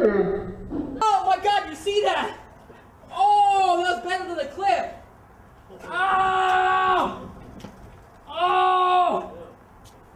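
A young man groans and cries out in pain close by.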